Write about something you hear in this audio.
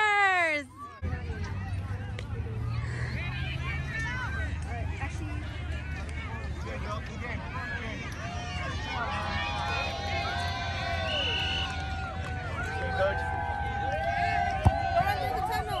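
Young children shout and chatter nearby outdoors.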